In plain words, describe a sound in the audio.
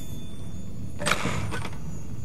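A metal gate rattles open.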